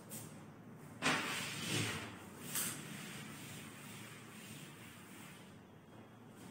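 A cloth rubs and wipes across a chalkboard.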